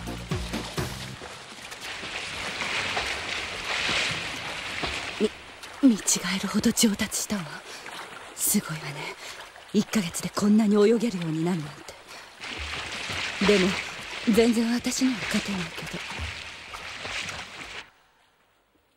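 Water splashes loudly as a swimmer churns through it.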